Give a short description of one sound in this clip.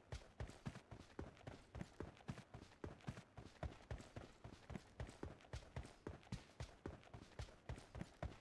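Footsteps run quickly and steadily through dry grass.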